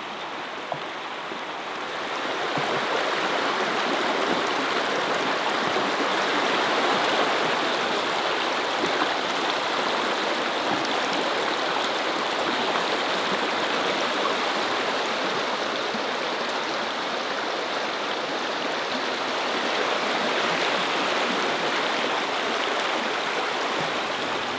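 A stream rushes and burbles steadily over rocks close by.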